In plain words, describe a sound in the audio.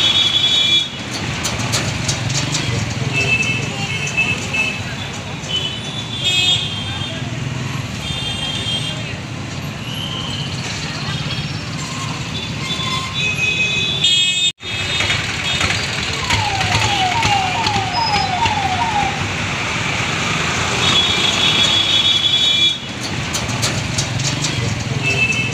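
A tractor engine chugs nearby.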